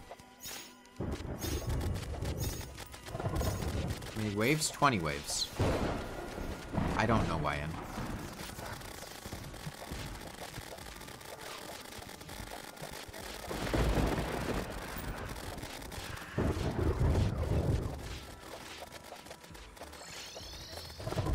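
Video game blasts and magic effects boom and crackle repeatedly.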